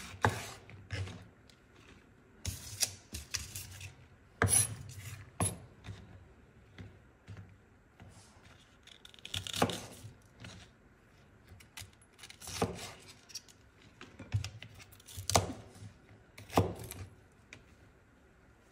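A knife chops through green vegetables on a wooden board with sharp knocks.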